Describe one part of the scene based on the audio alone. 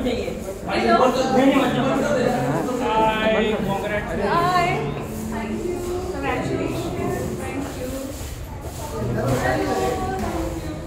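Several adults talk with animation close by.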